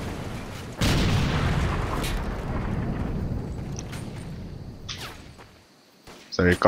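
A large explosion booms and rumbles away into the distance.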